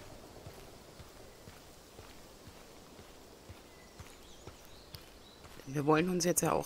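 Footsteps crunch softly on a dirt path at a steady walking pace.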